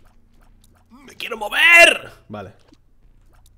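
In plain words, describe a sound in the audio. A man exclaims loudly into a close microphone.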